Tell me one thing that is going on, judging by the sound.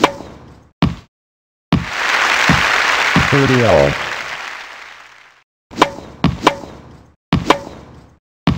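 A tennis ball is hit back and forth with sharp thwacks.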